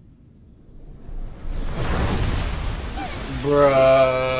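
A loud rushing blast of wind roars.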